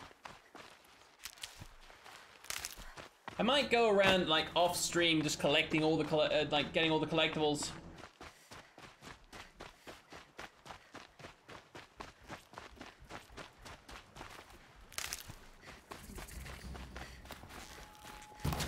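Footsteps patter quickly over rocky ground.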